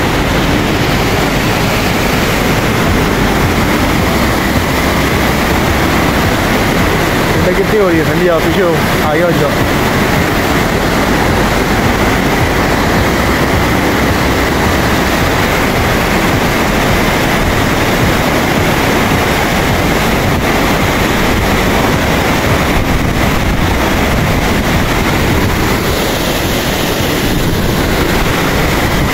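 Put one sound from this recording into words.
A fast mountain stream rushes and roars loudly over rocks.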